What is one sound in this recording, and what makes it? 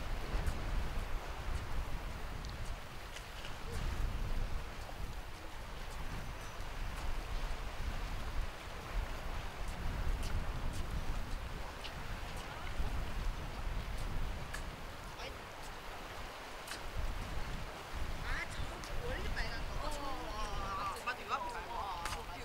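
Wind blows in gusts across the microphone outdoors.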